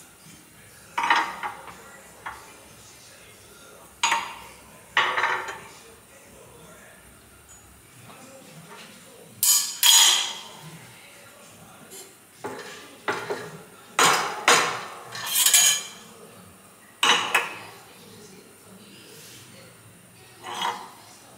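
Metal parts clank and scrape close by.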